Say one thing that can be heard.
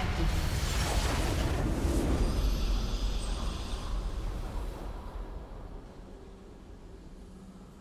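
A bright game fanfare plays and fades.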